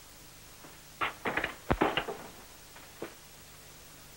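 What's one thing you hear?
A man rummages in a wooden cabinet, bumping and rustling.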